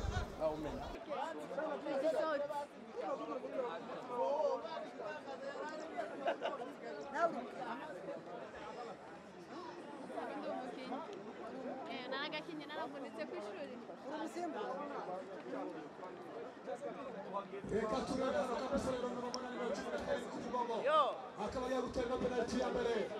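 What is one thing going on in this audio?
A crowd of onlookers chatters in the distance.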